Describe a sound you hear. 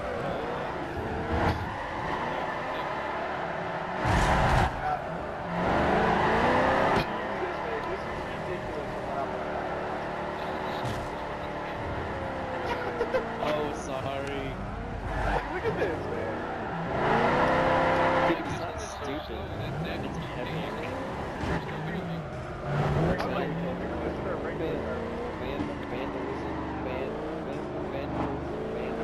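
A van engine roars and revs as it races.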